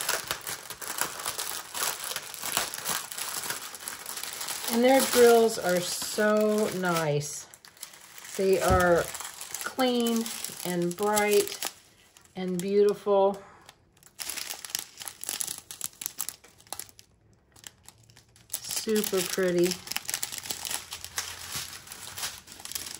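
Plastic packets crinkle and rustle as they are handled.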